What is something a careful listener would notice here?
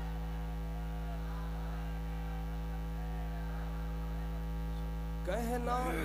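A young man recites melodically into a microphone, heard through loudspeakers.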